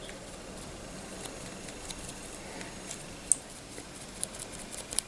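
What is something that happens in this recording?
Fingers handle a small plastic model, with faint clicks and scrapes.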